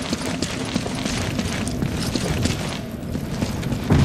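Footsteps scuff along a stone corridor.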